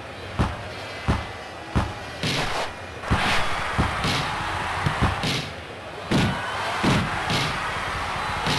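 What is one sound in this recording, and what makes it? A crowd cheers and roars in a large stadium.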